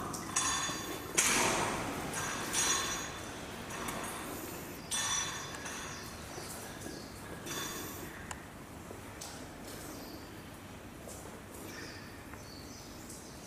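Ropes creak and rustle as an ape swings and climbs.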